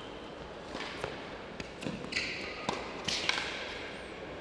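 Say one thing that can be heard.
A tennis ball is struck back and forth with rackets.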